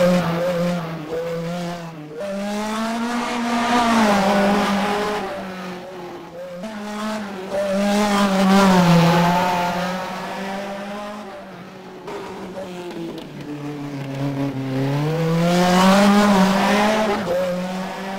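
A racing car engine whines loudly, rising and falling in pitch as it shifts gears.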